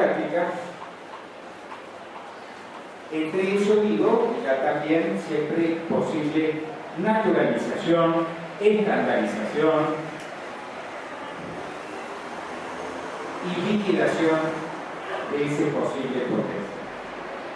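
An elderly man speaks calmly through a microphone and loudspeakers in an echoing hall.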